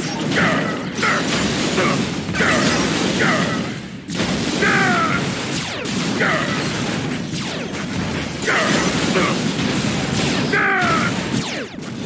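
Laser blasts fire with short sweeping zaps.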